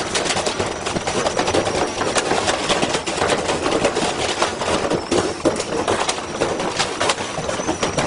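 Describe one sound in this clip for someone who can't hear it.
Metal parts clatter and scrape on the ground.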